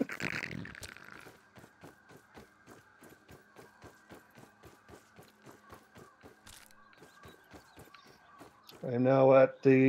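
Quick footsteps patter steadily on soft ground.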